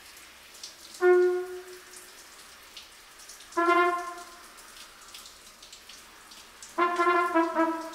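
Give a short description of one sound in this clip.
A trumpet plays short, loud notes that ring in a small echoing room.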